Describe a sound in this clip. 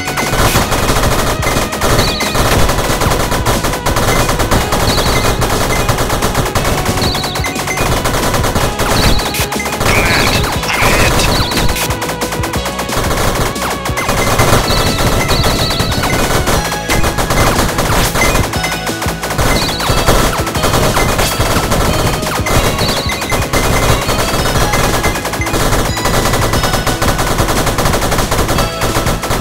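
Electronic game music plays steadily.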